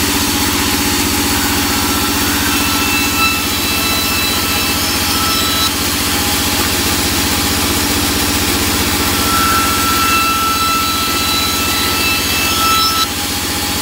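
A band saw blade cuts through wood with a high screech.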